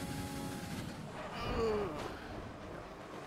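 A racing car engine drops in pitch as the car brakes.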